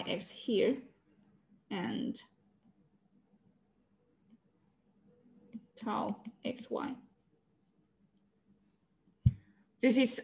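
A young woman speaks calmly through an online call microphone, in short phrases.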